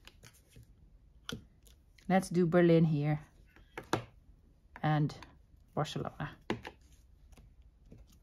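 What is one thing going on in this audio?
A rubber stamp block presses and taps onto paper.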